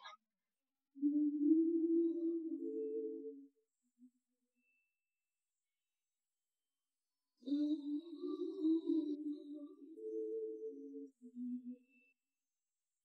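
A young man speaks softly and calmly, close by.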